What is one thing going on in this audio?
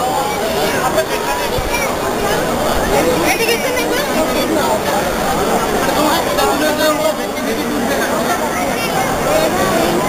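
A crowd of men and women murmurs and talks nearby, outdoors.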